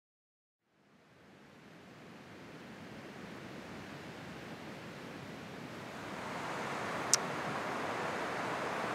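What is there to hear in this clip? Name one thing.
Ocean waves wash steadily onto a beach, growing louder.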